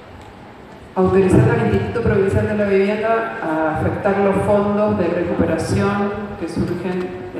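A man speaks loudly into a microphone in a large echoing hall.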